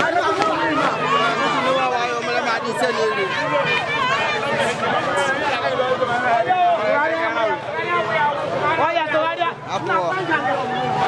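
A crowd of people shouts and chatters loudly outdoors.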